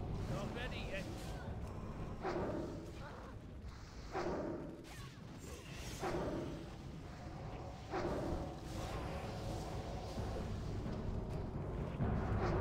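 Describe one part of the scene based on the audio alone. Magic spells whoosh and burst in a game.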